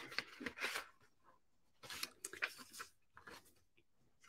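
Paper rustles as a hand handles it.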